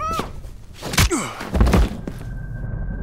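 A body hits the floor with a heavy thud.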